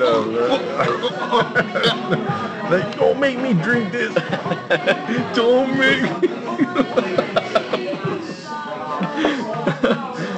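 A second man laughs and talks cheerfully.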